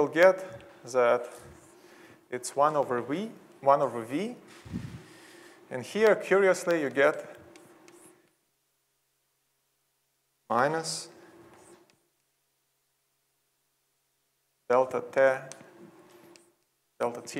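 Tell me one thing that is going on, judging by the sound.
A young man speaks calmly into a microphone, pausing between phrases.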